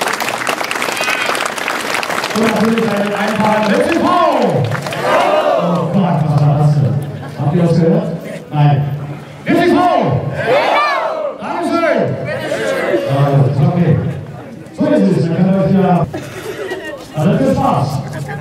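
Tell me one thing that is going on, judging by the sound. A man speaks with animation through a microphone and loudspeaker outdoors.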